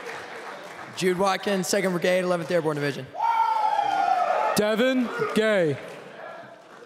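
A man shouts loudly into a microphone, heard over loudspeakers in a large echoing hall.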